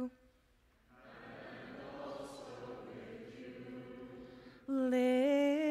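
A congregation sings a response together.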